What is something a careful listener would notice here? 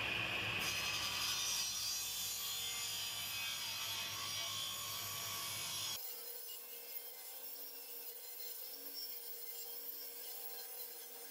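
A wood planer runs with a steady whirring drone.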